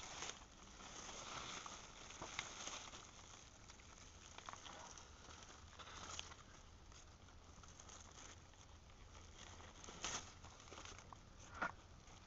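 Leaves rustle as a hand brushes through them.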